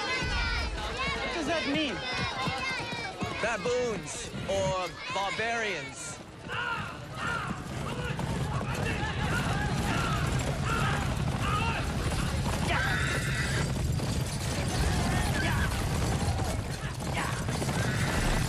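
Men talk in a crowd.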